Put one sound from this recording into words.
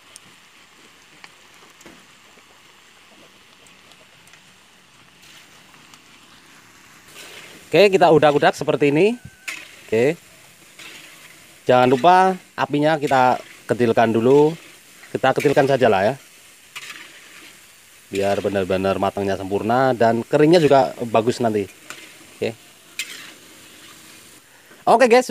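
Oil sizzles and bubbles in a hot pan.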